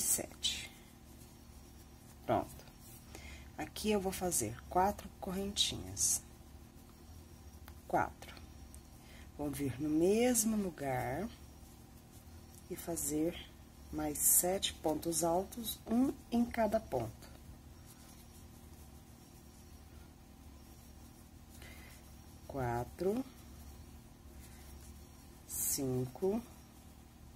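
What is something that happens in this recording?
A crochet hook rustles softly through yarn.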